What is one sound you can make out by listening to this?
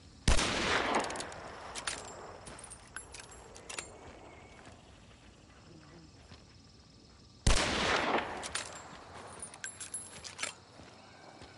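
Metal clicks and clacks as a revolver is reloaded.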